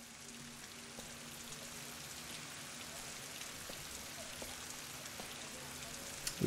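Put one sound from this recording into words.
Footsteps tread slowly on a wet street.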